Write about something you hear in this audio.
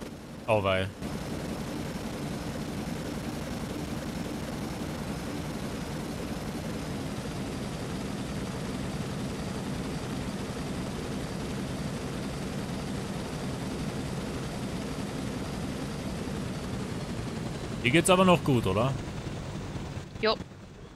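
A helicopter drones steadily overhead.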